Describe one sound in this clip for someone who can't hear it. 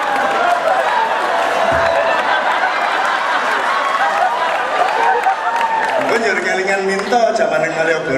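A crowd laughs.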